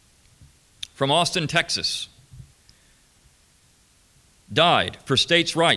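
A man speaks calmly into a microphone, with pauses, heard through a loudspeaker in a room.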